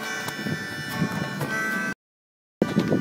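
A harmonica plays a steady tune close by.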